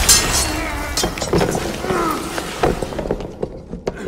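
A loud magical blast roars and crackles, then fades.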